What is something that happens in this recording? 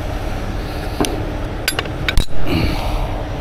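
Metal shackles clink and clank against a steel rail.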